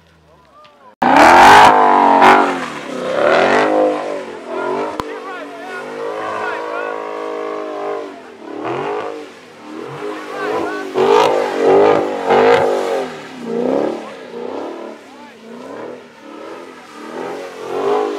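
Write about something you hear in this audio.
Tyres squeal on wet pavement.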